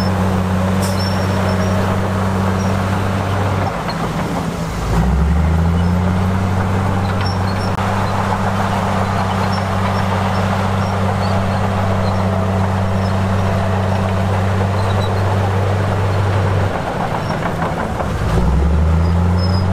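A bulldozer engine rumbles steadily and revs up and down.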